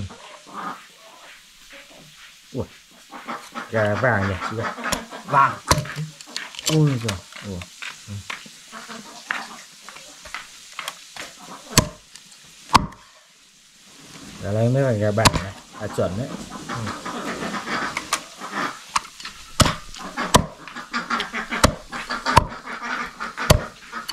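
A cleaver chops through meat and bone with sharp knocks.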